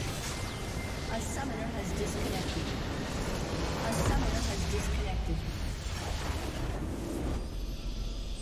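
Game spells and attacks crash and explode loudly.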